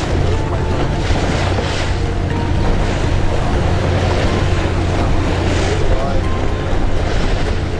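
Waves slosh and splash against a moving boat.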